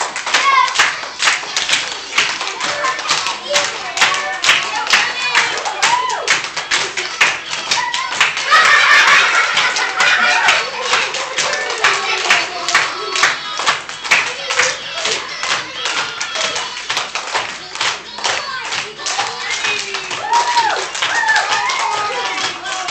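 Young children clap their hands in a steady rhythm.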